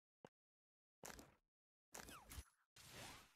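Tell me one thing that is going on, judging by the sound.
Blocks pop and burst in a puzzle game.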